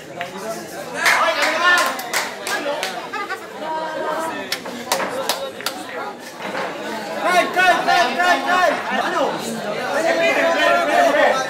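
Men cheer and shout loudly.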